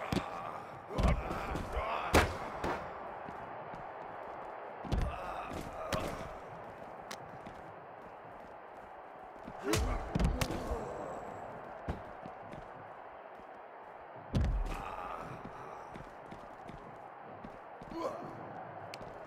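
Heavy blows and slams thud now and then during a brawl.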